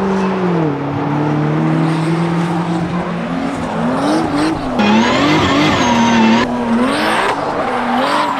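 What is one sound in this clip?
Tyres squeal on tarmac as a car drifts.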